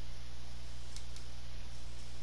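A menu selection clicks twice in quick succession.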